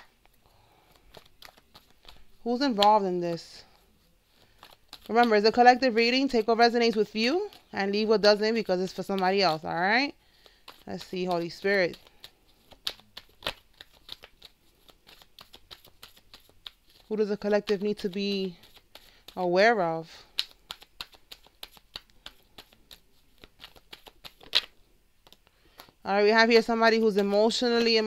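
Cards rustle and flick as they are shuffled by hand.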